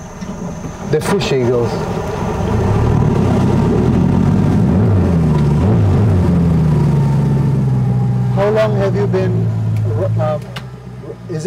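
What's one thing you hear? An outboard motor roars loudly as a boat speeds up.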